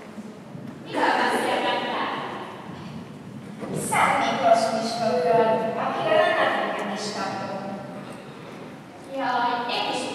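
Children speak in turn, echoing in a large hall.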